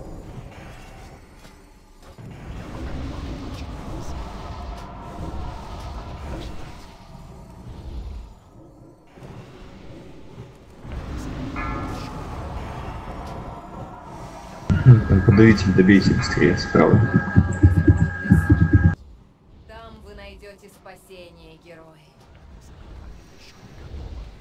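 Spell effects crackle and whoosh in a video game battle.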